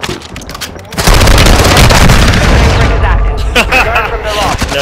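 A gun fires rapid bursts of loud shots.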